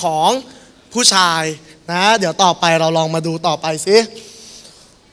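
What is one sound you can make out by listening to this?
A young man speaks with animation into a microphone over loudspeakers.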